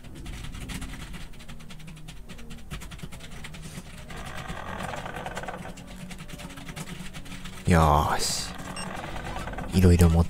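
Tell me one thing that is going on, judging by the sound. Steady game music with a low, droning melody plays throughout.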